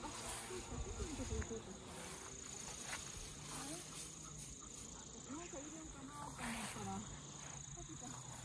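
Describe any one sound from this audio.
An animal rustles through tall grass.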